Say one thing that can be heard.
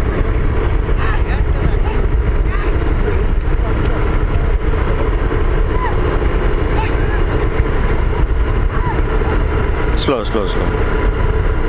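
Men shout to urge the bullocks on.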